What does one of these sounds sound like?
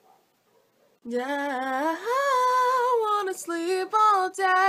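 A young woman sings close to the microphone.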